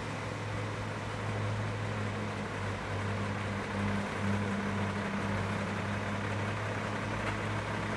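A heavy truck engine idles with a low, steady rumble.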